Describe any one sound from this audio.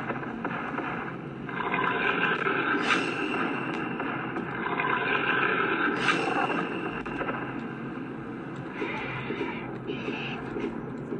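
Video game music and sound effects play from a tablet's small speaker.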